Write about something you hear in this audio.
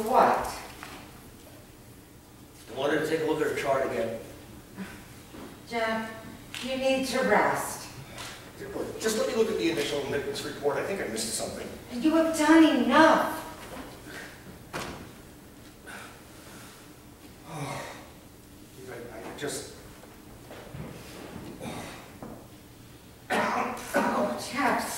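A woman speaks with animation in a reverberant hall.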